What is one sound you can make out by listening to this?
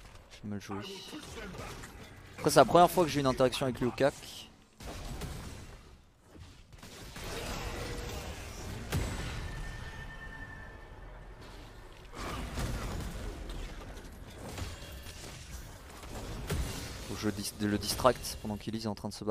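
Game sound effects clash and whoosh during a fight.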